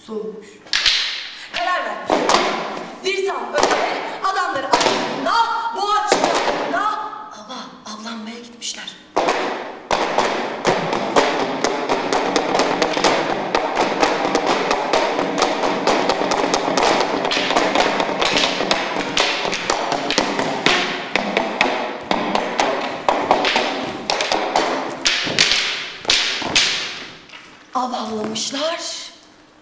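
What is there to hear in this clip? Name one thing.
Wooden staffs knock on a stage floor.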